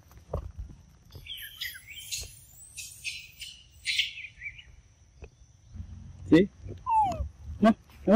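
A monkey scrabbles up tree bark.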